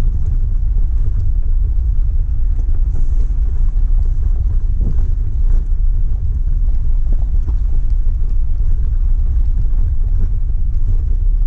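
Tyres crunch and rattle over loose gravel.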